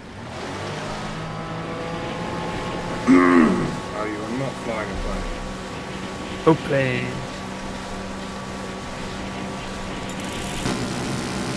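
A boat engine hums steadily over water.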